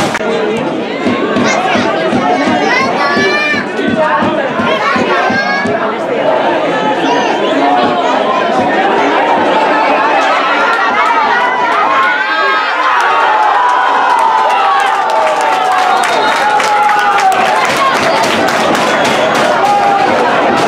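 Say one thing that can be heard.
A crowd of spectators cheers and shouts loudly outdoors.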